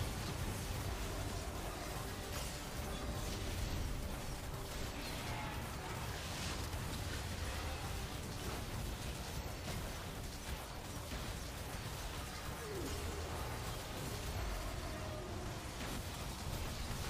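Game battle effects clash, zap and burst continuously.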